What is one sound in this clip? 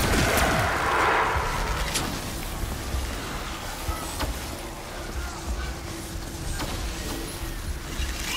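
A flamethrower roars with fire.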